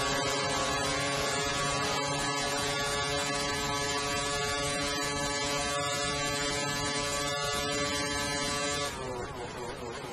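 A racing car engine screams at a steady high pitch, then drops in pitch as it slows.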